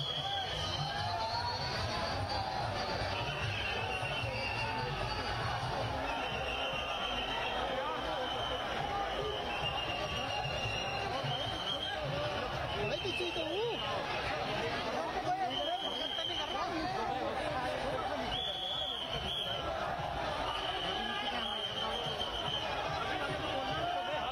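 A large crowd cheers and chants loudly outdoors.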